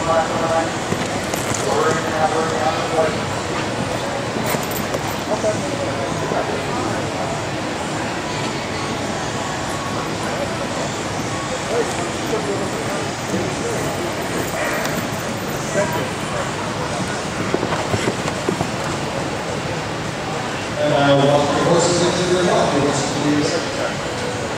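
A woman talks nearby in a large hall.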